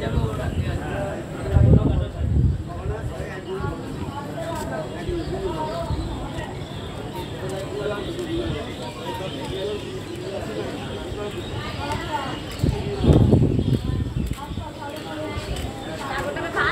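A crowd of men and women chatter nearby in an open space.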